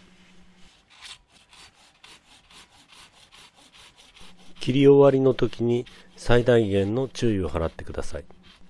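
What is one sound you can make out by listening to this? A hand saw rasps through a branch in quick, even strokes.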